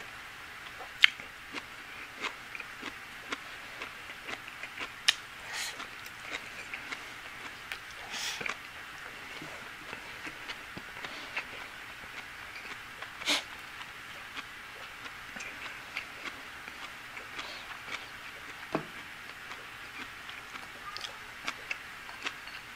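A man chews and slurps food noisily up close.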